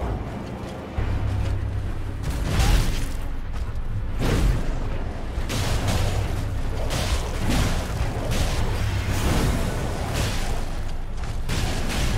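Swords clash and strike in a fight in a game.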